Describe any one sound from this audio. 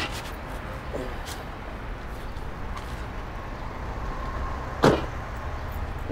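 A car door thuds shut.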